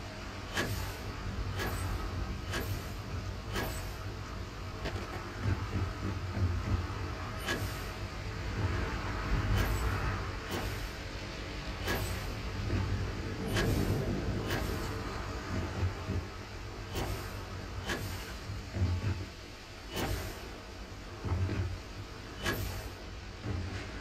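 A low hum of machinery drones throughout.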